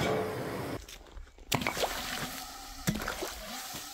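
A boot splashes into a puddle of water.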